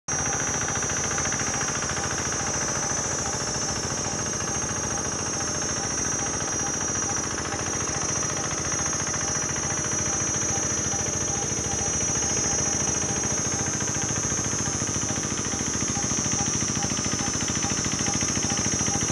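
A small diesel engine chugs steadily close by.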